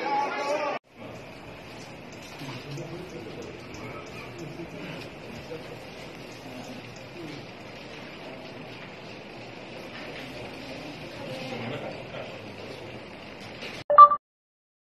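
People talk quietly in a room.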